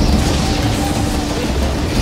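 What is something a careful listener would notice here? Electricity crackles and sizzles loudly.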